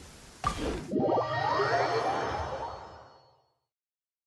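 A swelling whoosh rises and then fades out.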